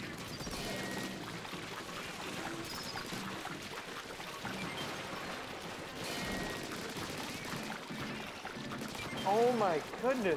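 Cartoonish blasters fire and splatter in quick bursts.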